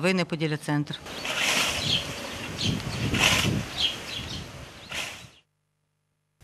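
A scythe swishes through tall grass.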